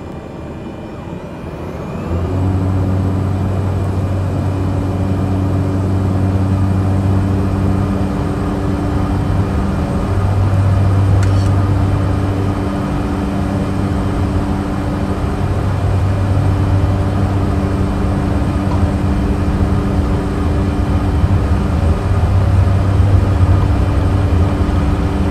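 A propeller aircraft engine hums, then roars louder as the aircraft speeds down a runway.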